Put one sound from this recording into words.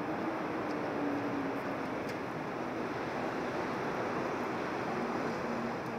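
A glass door opens and swings shut.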